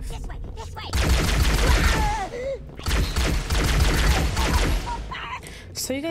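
A plasma gun fires in rapid bursts.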